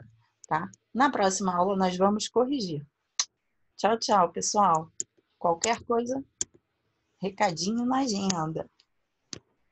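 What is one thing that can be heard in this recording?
A woman speaks calmly through an online call microphone.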